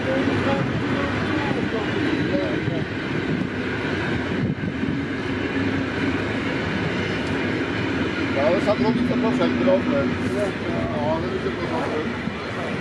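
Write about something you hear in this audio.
Train wheels squeal on the track.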